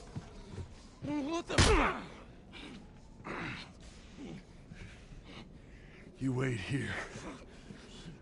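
A man speaks in a rough, startled voice close by.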